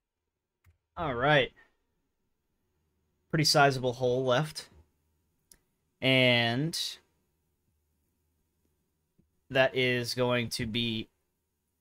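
A man talks with animation in short bursts, close to a microphone.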